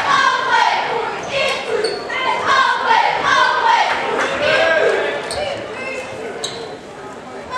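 A crowd of spectators shouts and cheers loudly in an echoing gym.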